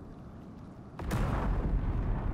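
An explosion bursts with a sharp boom.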